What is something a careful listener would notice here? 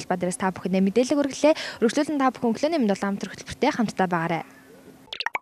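A young woman speaks with animation into a microphone, close by.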